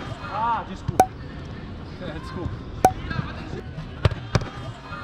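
A ball is kicked hard with sharp thuds.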